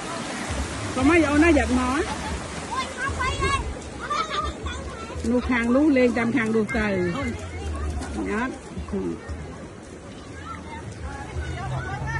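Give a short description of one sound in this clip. Several women talk and call out nearby, outdoors.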